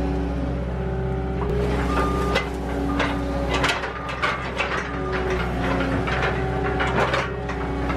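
A diesel engine of a small loader rumbles and whines steadily close by.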